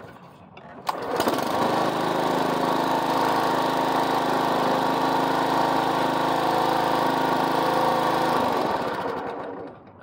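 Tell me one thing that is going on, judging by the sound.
A lawn mower engine starts and roars steadily, then cuts off.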